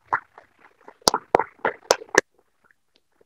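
A woman claps her hands loudly close to a microphone.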